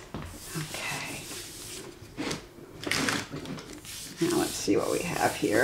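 Hands slide and rustle over a sheet of paper.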